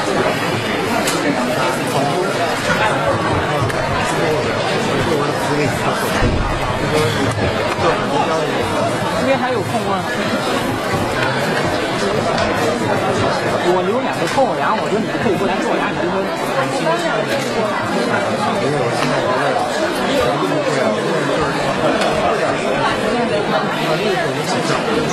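A crowd of men and women talk over one another in an echoing hall.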